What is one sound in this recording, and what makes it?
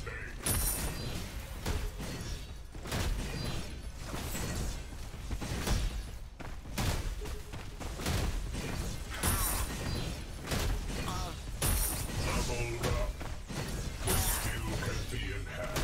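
Metal weapons clash and clang in a fast fight.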